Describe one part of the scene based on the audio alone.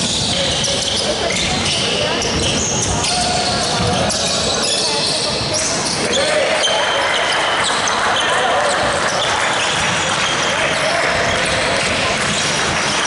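A crowd of spectators chatters and calls out in the echoing hall.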